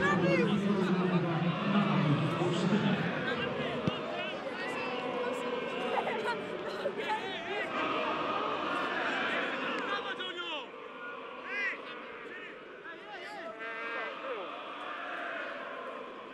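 A large stadium crowd roars loudly, then settles to a steady murmur.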